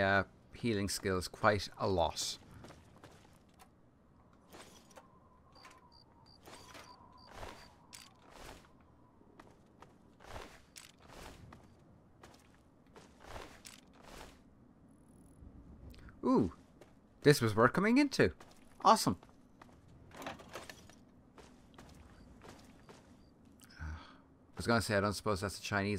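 Footsteps tread slowly over rubble.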